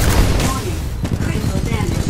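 Heavy gunfire rattles in rapid bursts.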